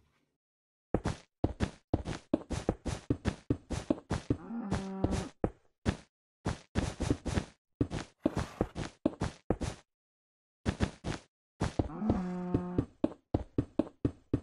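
Blocks break with quick, repeated crunching taps.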